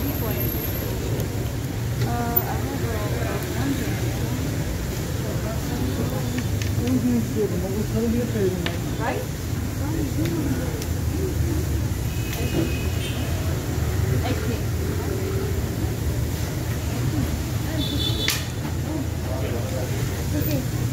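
A young woman talks and laughs close by.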